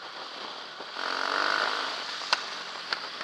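A motorbike engine roars louder as it passes close by.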